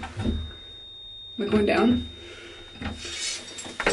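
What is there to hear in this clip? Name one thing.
A lift button clicks as it is pressed.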